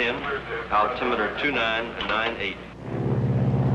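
A man speaks into a radio microphone, heard through a crackly radio line.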